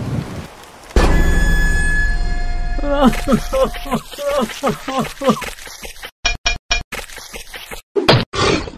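A cartoon creature sobs and wails loudly.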